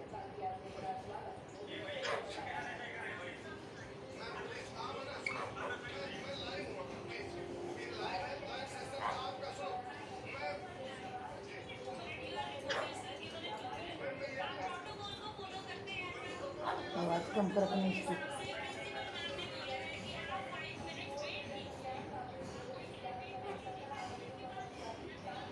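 A parrot chatters and squawks close by.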